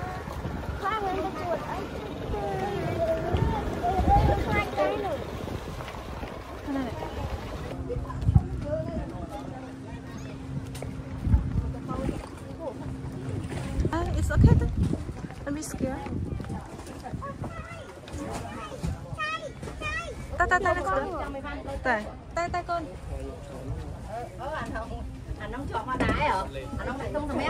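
A woman talks nearby in a casual voice.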